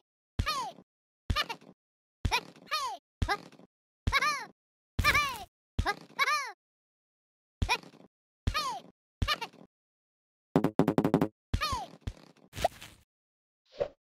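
Playful cartoon sound effects chirp and swoop in quick bursts.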